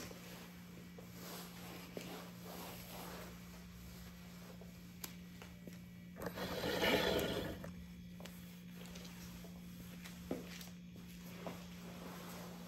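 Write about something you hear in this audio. Slippers scuff and slap on a hard floor.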